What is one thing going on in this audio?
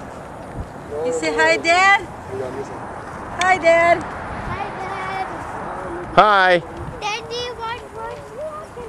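A young boy calls out with high, excited shouts.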